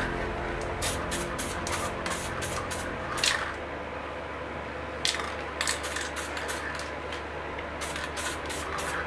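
A spray can hisses in short, repeated bursts.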